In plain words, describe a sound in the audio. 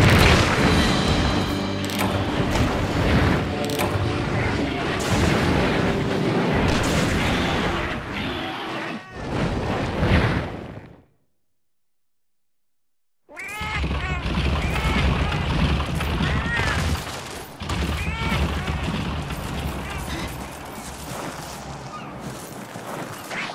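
Lively game music plays.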